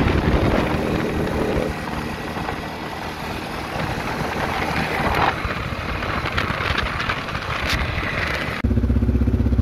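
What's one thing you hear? Wind buffets the microphone as the vehicle drives along.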